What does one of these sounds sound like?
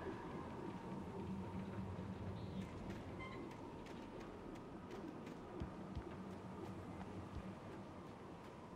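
Footsteps crunch on gravel and grass at a steady walking pace.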